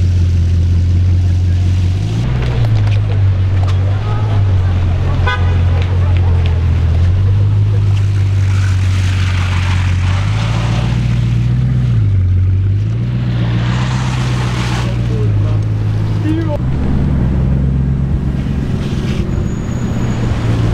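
A powerful car engine idles with a deep, loud rumble that rises and falls as it revs.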